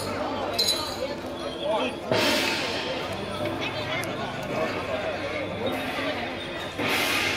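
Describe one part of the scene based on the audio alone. A crowd murmurs in the street.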